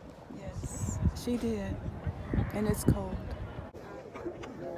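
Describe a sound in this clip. An elderly woman talks close by.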